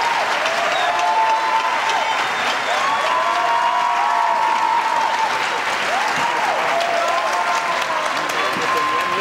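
A woman sings through a microphone in a large hall.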